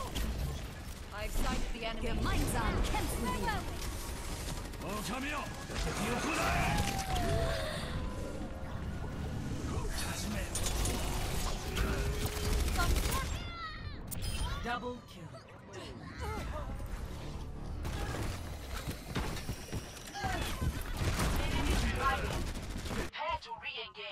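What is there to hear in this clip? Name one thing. Rapid gunfire blasts in quick bursts.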